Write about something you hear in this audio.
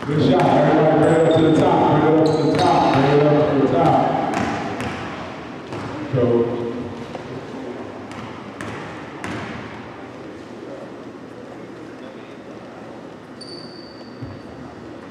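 Sneakers squeak on the floor.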